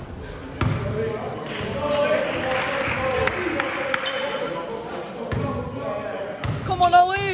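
Young men call out to each other across the hall.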